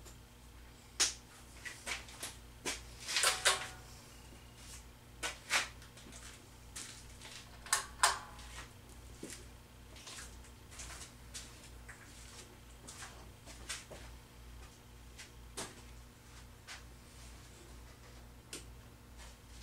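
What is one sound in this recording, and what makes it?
Tools and objects clatter and knock as a man moves about a workshop.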